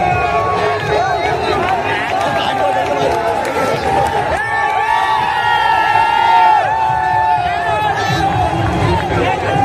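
A large crowd cheers and shouts loudly in a stadium.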